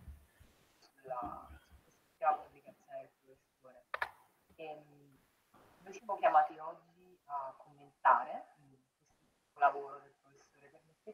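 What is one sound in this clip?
An elderly man speaks calmly, heard through an online call.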